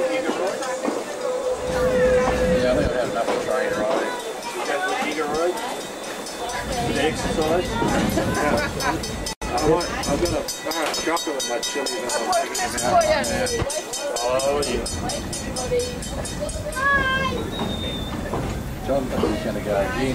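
Several adults talk nearby with animation.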